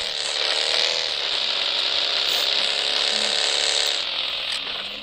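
A vehicle engine hums steadily, then cuts off.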